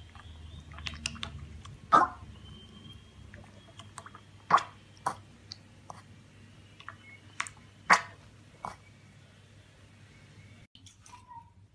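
A piglet slurps and laps milk from a bowl.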